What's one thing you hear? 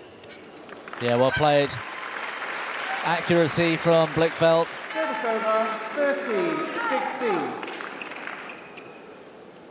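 A crowd cheers and applauds loudly in a large hall.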